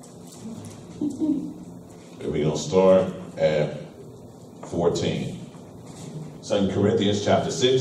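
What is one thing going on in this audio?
A man speaks calmly through a microphone in a room with some echo.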